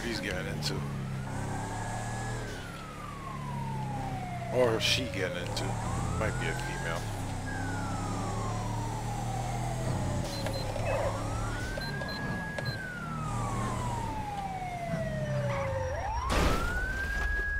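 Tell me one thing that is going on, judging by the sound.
A police siren wails, rising and falling slowly.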